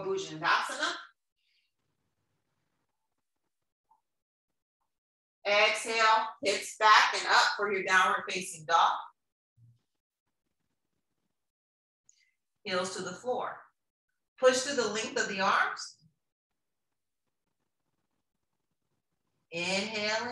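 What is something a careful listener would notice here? A young woman speaks calmly and clearly, giving instructions in short phrases with pauses.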